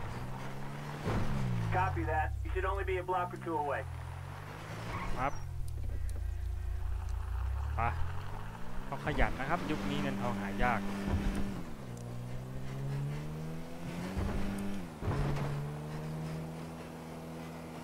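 A car engine hums and rises in pitch as it shifts through gears.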